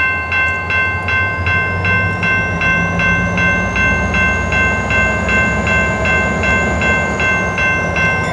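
A diesel locomotive rumbles as it approaches and grows louder.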